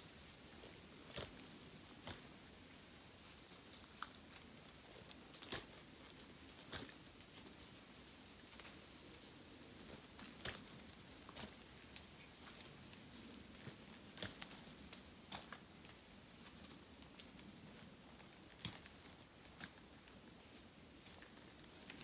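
A light breeze rustles through the trees outdoors.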